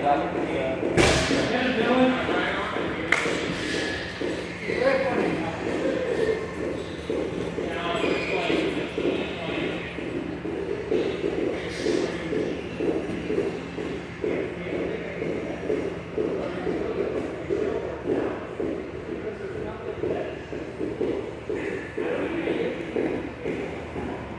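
Bodies thud and shuffle on a mat.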